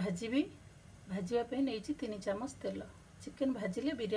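Oil pours into a pot.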